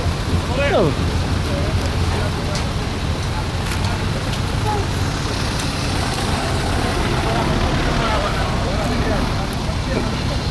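An off-road vehicle's engine rumbles steadily close by.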